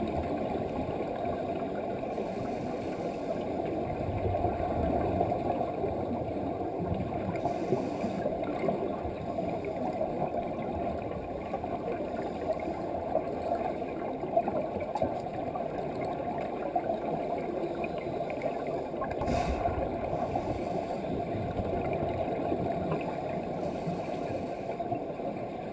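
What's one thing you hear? Air bubbles gurgle and rumble from a scuba regulator underwater.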